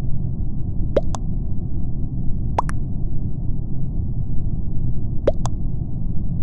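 A short electronic blip sounds as each chat message pops up.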